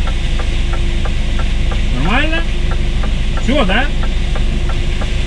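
A truck engine idles with a steady, low rumble.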